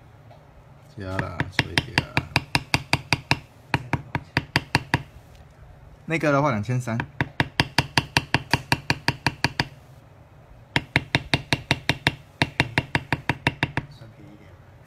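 A mallet taps quickly and steadily on a metal tool.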